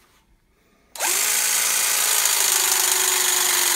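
A battery press tool whirs steadily as its jaws squeeze a pipe fitting.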